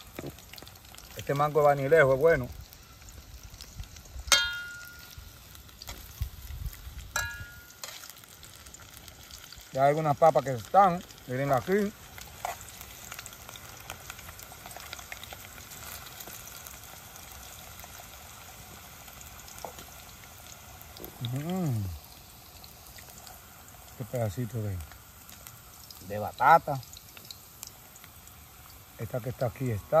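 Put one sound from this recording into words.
Food sizzles in oil in a pan.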